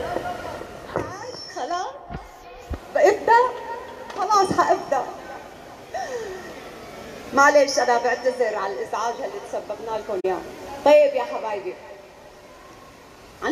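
A woman sings through loudspeakers in a large echoing hall.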